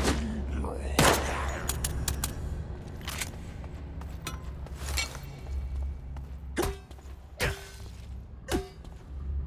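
A metal pipe strikes with heavy thuds.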